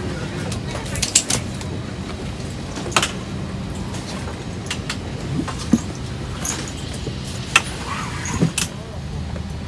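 Knocks and clicks of passengers moving about sound nearby.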